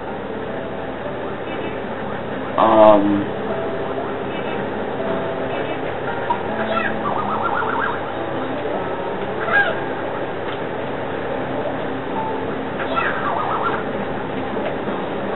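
Cheerful video game music plays steadily.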